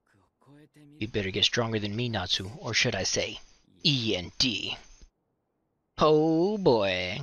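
A young man speaks in a taunting tone.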